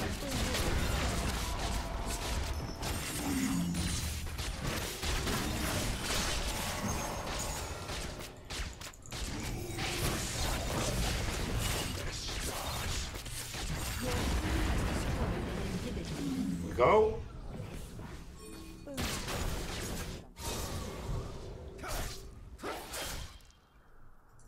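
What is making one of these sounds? Game sound effects of spells and fighting play loudly.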